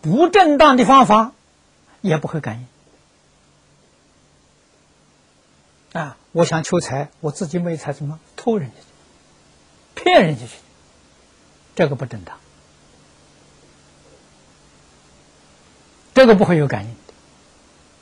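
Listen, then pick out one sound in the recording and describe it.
An elderly man speaks calmly into a clip-on microphone, in short phrases with long pauses.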